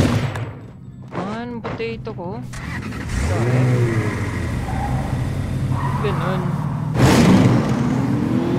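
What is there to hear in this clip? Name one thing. A vehicle engine hums and revs as it drives over grass.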